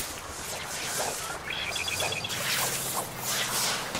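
A fishing line swishes through the air as it is cast.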